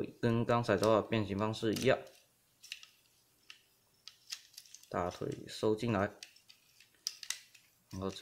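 Plastic parts click and snap as a toy figure is handled.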